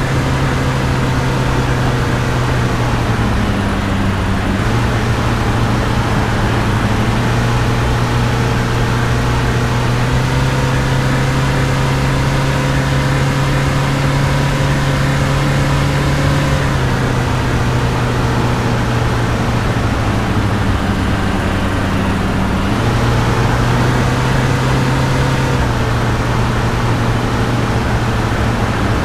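Tyres roll over a road with a steady rushing noise.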